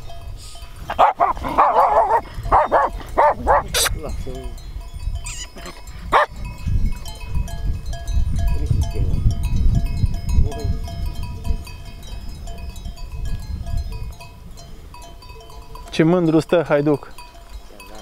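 Dogs bark and yelp excitedly nearby.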